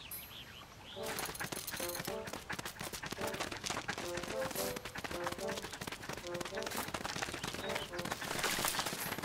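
Small footsteps patter quickly across the ground.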